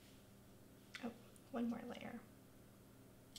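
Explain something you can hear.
A woman speaks briefly and quietly into a microphone.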